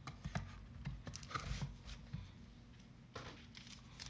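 A box is handled with soft knocks and taps.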